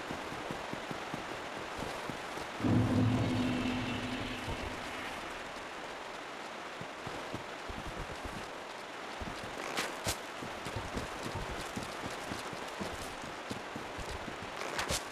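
Footsteps crunch steadily on leaves and earth.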